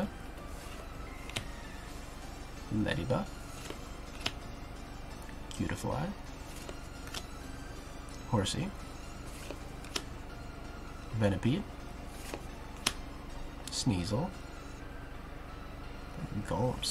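Trading cards softly slap and rustle in hands.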